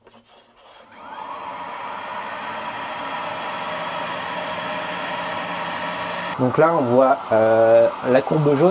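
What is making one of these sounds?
A coffee roaster hums with a steady whir of its fan.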